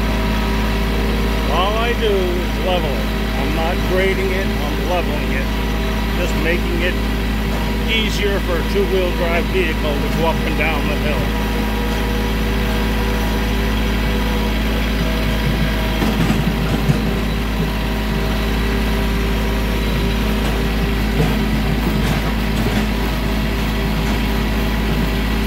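A tractor engine hums steadily close by.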